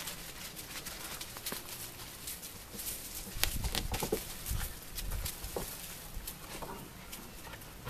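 A puppy scratches and scuffs in sand.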